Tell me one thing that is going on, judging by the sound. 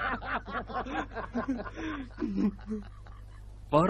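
A man laughs heartily up close.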